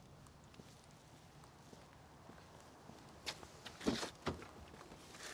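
Footsteps walk away on pavement outdoors.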